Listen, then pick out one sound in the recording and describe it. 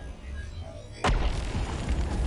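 A sudden loud impact booms.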